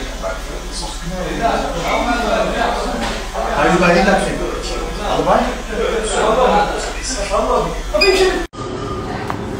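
A man talks on a phone nearby with animation.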